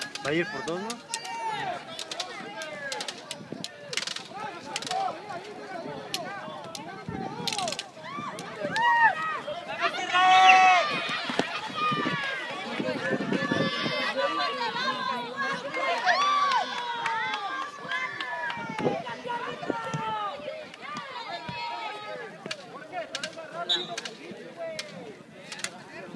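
A crowd of young spectators shouts and cheers outdoors.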